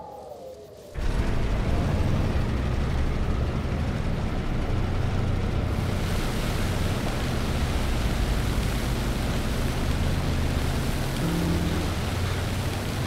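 A heavy tank engine rumbles loudly and steadily.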